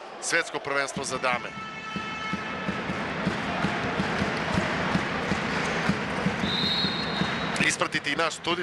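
A crowd roars and chants in a large echoing hall.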